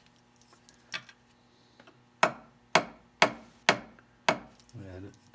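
A clamp clicks sharply several times as it is squeezed tight.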